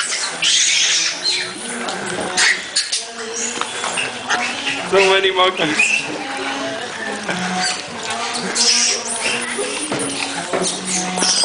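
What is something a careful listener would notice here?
Monkeys screech and chatter close by.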